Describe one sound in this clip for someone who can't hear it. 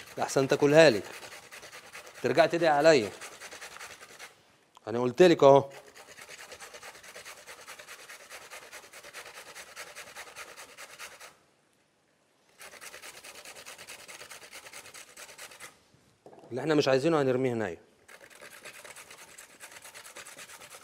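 A metal grater rasps rapidly against a carrot.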